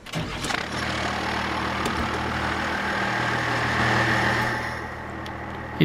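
A diesel truck engine revs up and settles back down.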